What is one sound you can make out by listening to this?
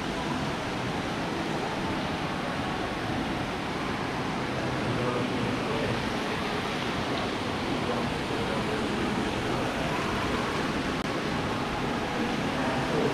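Water splashes steadily in a fountain.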